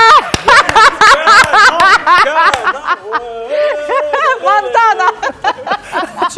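Several people laugh together.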